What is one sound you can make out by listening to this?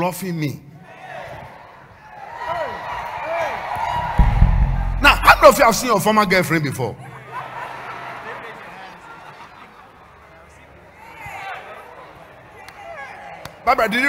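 A crowd cheers and calls out.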